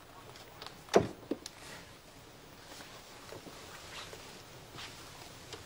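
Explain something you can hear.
Footsteps cross a wooden floor.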